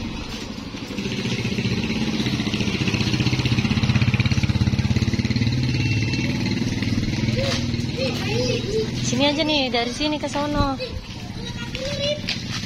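A motorcycle engine idles with a low rumble close by.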